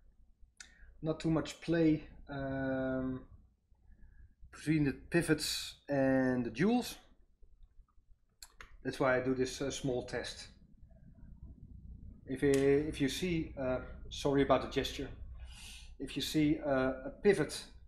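A middle-aged man talks calmly into a close microphone.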